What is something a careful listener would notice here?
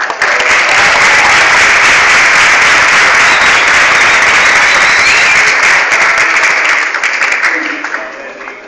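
A crowd applauds and cheers loudly in a large echoing hall.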